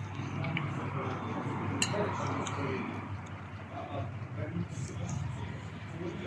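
Cutlery scrapes on a plate.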